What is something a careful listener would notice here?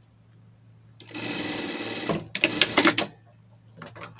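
A sewing machine runs quickly, stitching fabric.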